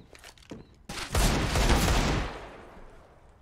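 A gunshot booms and echoes.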